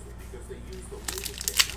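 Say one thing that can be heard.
Plastic wrapping crinkles and tears as a pack is opened.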